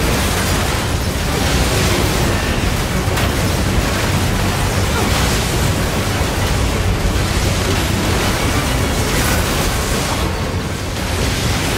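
Metal clashes and clangs in rapid blows.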